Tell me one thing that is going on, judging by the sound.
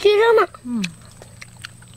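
A young girl exclaims with a high, wavering voice.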